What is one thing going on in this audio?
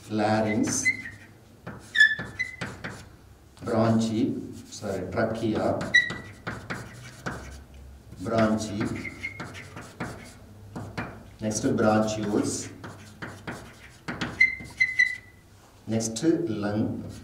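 A middle-aged man speaks calmly and clearly, as if teaching, close by.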